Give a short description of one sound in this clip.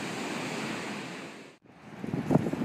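Waves crash and roar on the shore.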